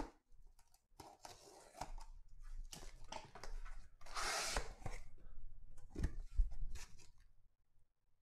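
Cardboard flaps rustle and scrape as a box is opened by hand.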